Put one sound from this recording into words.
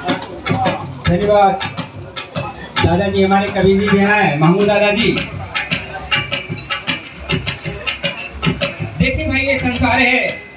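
A hand drum beats a quick rhythm.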